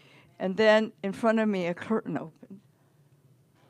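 An elderly woman speaks with animation into a microphone.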